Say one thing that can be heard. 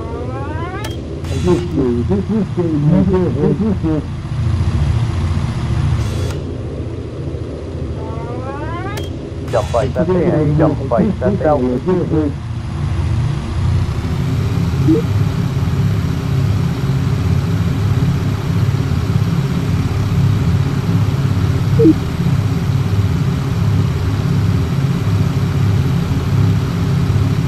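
Propeller engines drone steadily and loudly.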